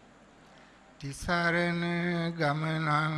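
An elderly man chants in a long, drawn-out voice through a microphone.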